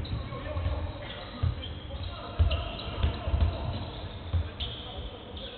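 A basketball thumps as it is dribbled on a wooden floor in an echoing hall.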